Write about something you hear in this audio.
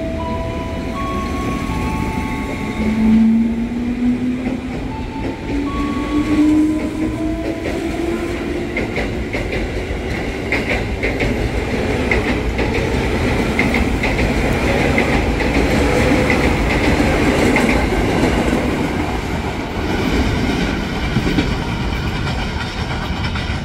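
An electric train rolls past close by, rumbling and whining.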